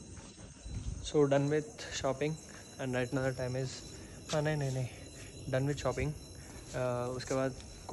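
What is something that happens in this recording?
A young man speaks close up with animation.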